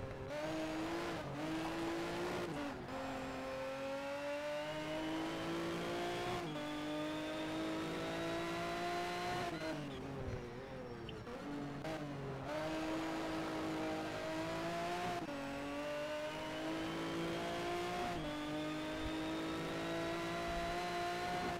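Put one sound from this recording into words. A racing car engine accelerates, climbing in pitch through quick gear changes.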